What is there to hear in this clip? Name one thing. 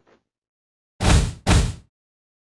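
A vehicle explodes with a loud boom.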